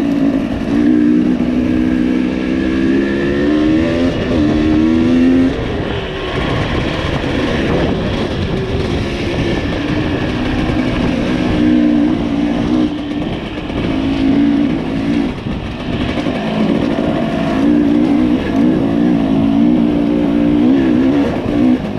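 A dirt bike engine revs and drones up close, rising and falling in pitch.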